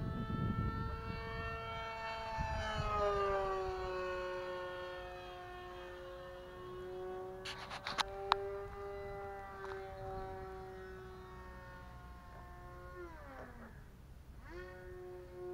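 A model plane's motor whines steadily overhead, its pitch dipping and rising.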